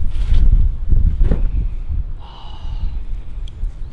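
A heavy backpack thumps onto the ground.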